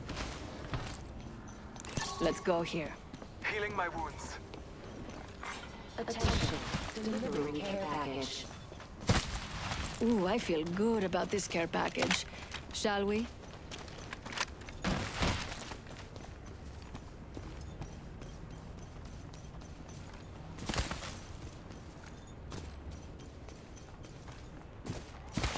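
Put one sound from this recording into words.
Footsteps run over hard ground and dirt.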